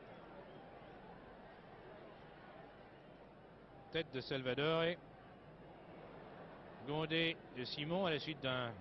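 A large stadium crowd murmurs in the distance.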